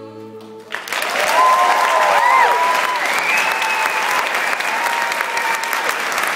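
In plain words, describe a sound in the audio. People in an audience cheer and whistle.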